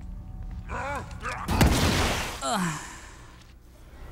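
A knife stabs into flesh with a wet thud.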